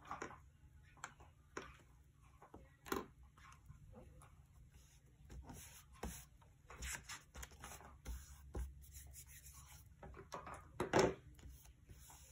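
A hand smooths paper flat onto a notebook page with soft rustles.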